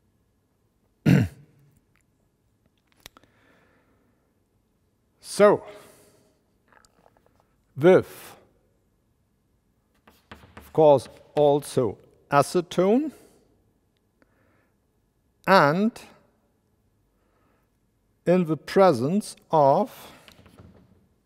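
A man speaks in short phrases, lecturing in a large echoing hall.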